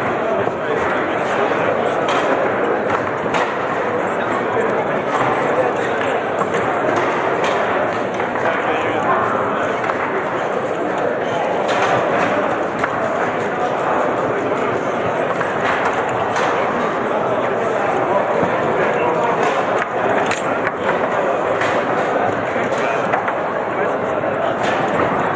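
A table football ball cracks against the rods and walls in sharp knocks.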